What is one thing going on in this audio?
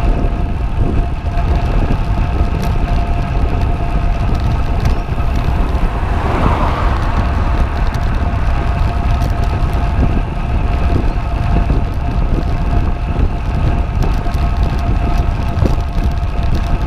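Bicycle tyres hum steadily on smooth asphalt.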